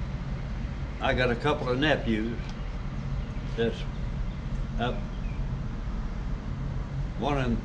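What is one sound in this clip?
An elderly man speaks calmly in short bursts close by.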